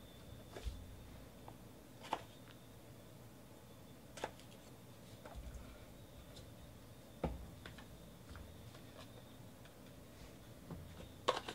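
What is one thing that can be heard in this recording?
Card packs rustle and crinkle in hands.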